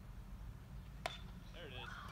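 A bat cracks against a ball once, sharp and far off.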